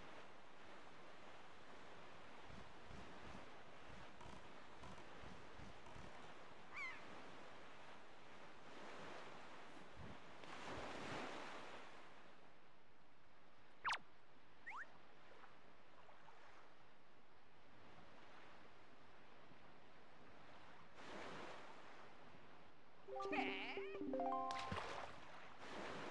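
Water rushes and splashes steadily under a small sailing boat.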